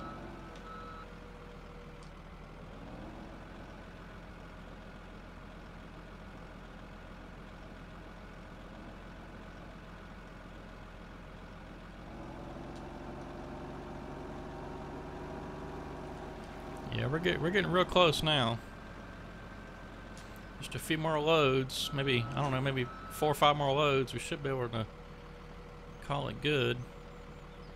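A heavy loader's diesel engine hums steadily and grows louder as the loader drives off.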